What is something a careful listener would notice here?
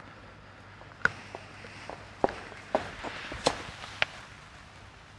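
Footsteps and shoes knock on a hard floor.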